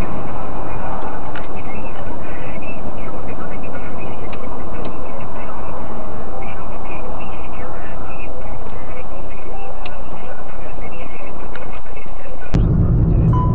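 Tyres roar steadily on a highway.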